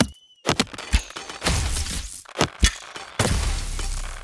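Thunder cracks loudly as lightning strikes.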